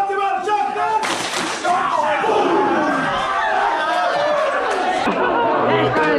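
Young men shout and cheer in an echoing room.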